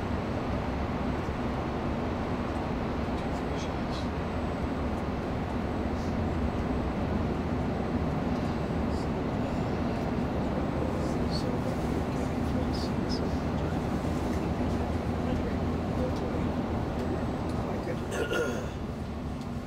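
Tyres roar steadily on the road surface, echoing inside a tunnel.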